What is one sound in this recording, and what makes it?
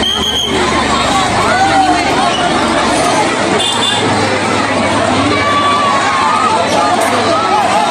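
A large outdoor crowd chatters, shouts and cheers loudly all around.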